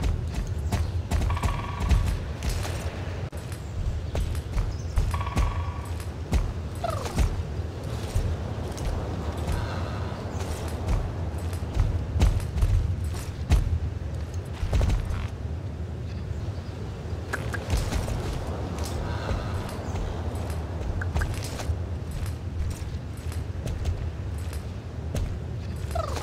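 Horse hooves clop steadily at a gallop.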